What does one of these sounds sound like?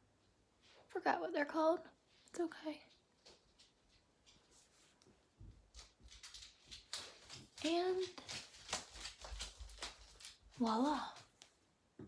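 A young woman talks casually and close by, in short bursts.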